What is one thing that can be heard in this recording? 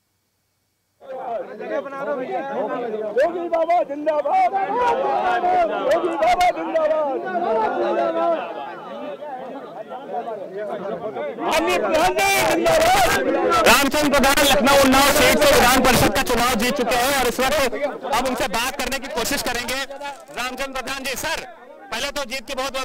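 A crowd of men cheers and shouts outdoors.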